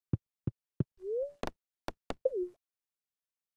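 Soft electronic blips chirp as a menu is chosen.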